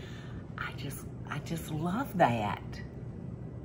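An elderly woman speaks warmly and with animation close by.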